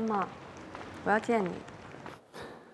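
A young woman speaks through a phone.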